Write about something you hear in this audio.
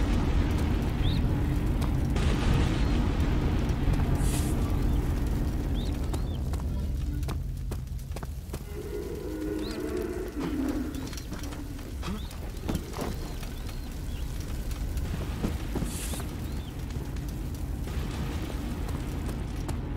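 Torches crackle softly.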